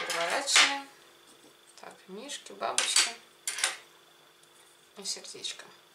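Metal cookie cutters clink against each other.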